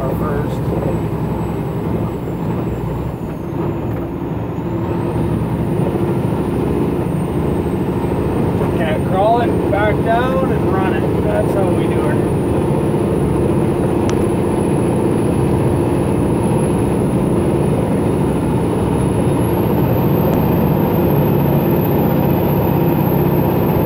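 Tyres crunch and rumble over a gravel road.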